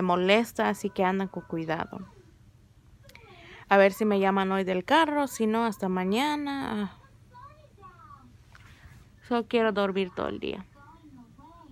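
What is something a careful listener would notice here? A young woman speaks playfully up close, her voice rising and falling.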